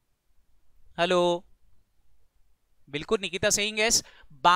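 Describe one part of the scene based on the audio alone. A man speaks calmly into a microphone, in short bursts.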